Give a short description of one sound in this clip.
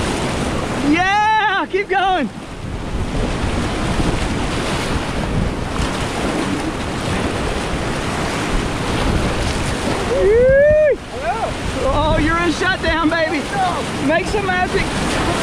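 Whitewater rushes and churns loudly all around.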